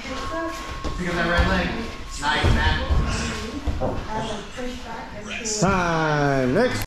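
Men talk casually nearby in a room with some echo.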